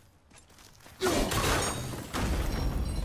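An axe whooshes through the air and thuds into wood.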